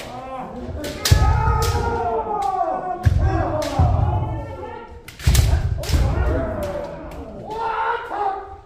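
Kendo fencers shout sharp battle cries in a large echoing hall.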